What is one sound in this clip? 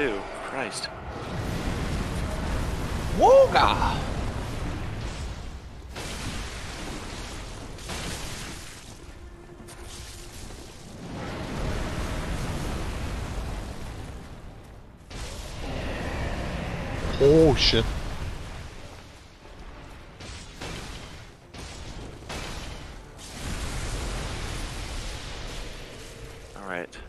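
A heavy blade clangs and slashes against flesh.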